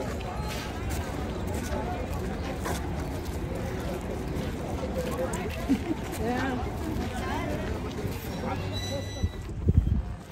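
A crowd of people talks in the distance outdoors.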